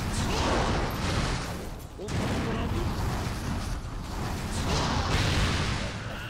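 Fire explosions roar and crackle.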